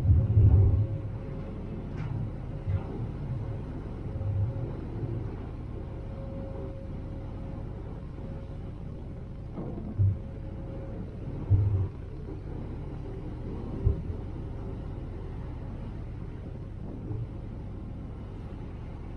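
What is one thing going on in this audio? Churning water rushes in a boat's wake.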